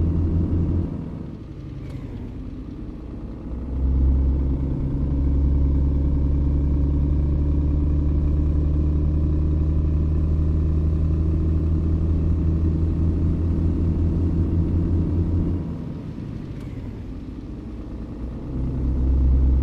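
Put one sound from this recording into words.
A heavy diesel truck engine drops away briefly during gear changes.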